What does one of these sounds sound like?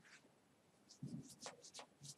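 A young man scratches his head close to a microphone.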